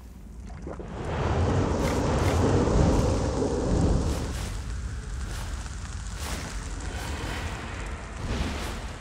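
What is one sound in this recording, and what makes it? A magical shimmering whoosh swells and then fades.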